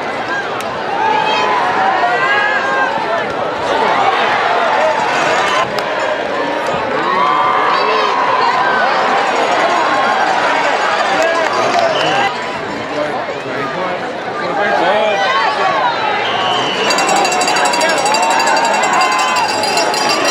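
A large crowd cheers and shouts in an open-air stadium.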